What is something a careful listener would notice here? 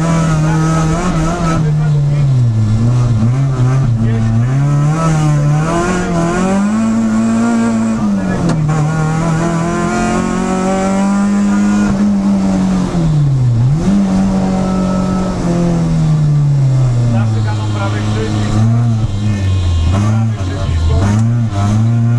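A four-cylinder petrol rally car engine revs up and down through the gears, heard from inside the cabin.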